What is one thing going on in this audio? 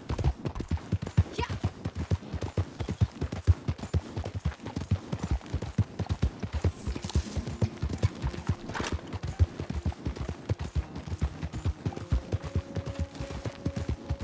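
Horse hooves pound quickly on grass at a gallop.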